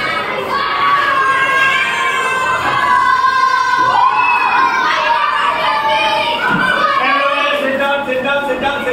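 A crowd of children shouts and cheers excitedly indoors.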